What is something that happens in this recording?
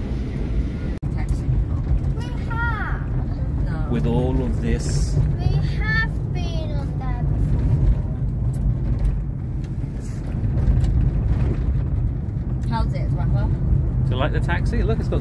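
A car engine rumbles steadily from inside the car as it drives.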